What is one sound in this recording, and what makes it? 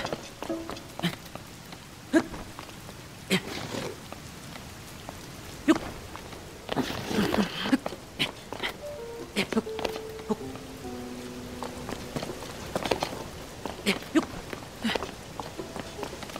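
Hands and boots scrape and thump against rock during a climb.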